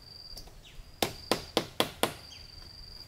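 Bamboo poles knock together with sharp hollow clacks.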